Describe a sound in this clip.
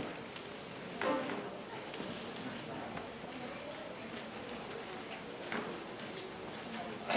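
An elderly woman speaks softly nearby.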